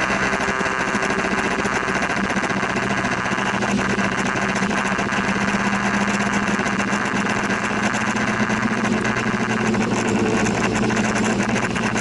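Rain patters steadily on a car windscreen.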